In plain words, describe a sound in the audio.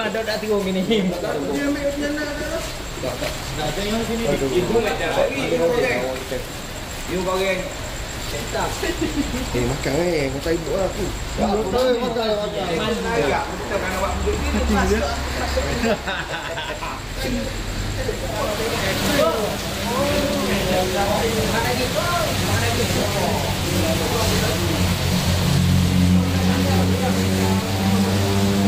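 Several men talk and laugh close by in a lively group.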